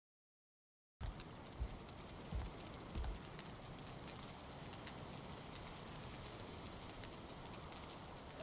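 Torch flames crackle and hiss steadily.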